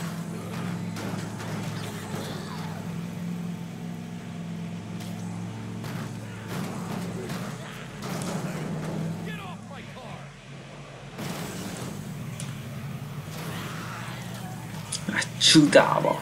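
A van crashes into bodies with heavy thuds.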